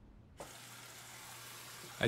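Fingers tap on a laptop keyboard.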